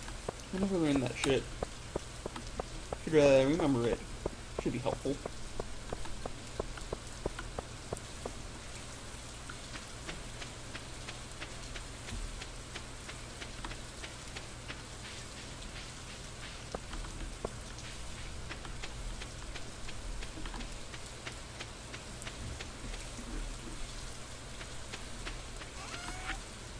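Footsteps patter quickly on stone and dirt paths.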